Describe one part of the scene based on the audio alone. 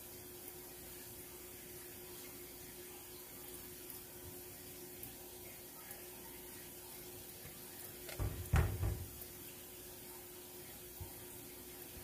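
A spatula stirs and knocks in a pot of thick sauce.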